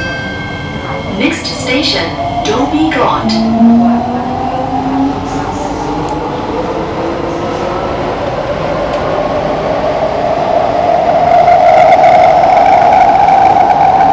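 A subway train pulls out of a station, its motor whining and rising in pitch.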